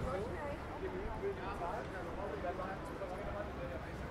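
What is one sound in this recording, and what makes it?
A man talks faintly nearby outdoors.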